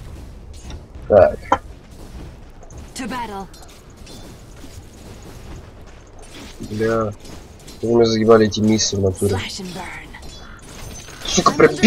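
Spells crackle and weapons clash in a fast game battle.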